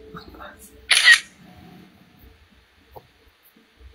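A young woman speaks briefly close to a microphone.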